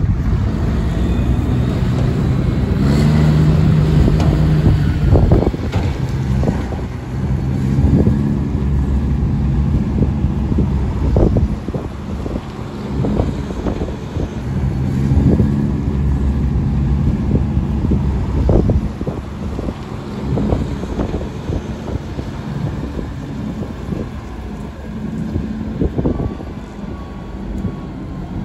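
A tractor engine rumbles nearby.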